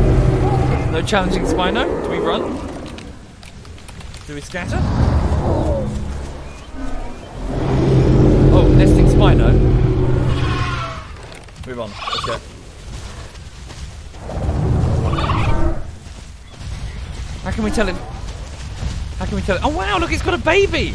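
Dinosaurs give high, warbling calls, over and over.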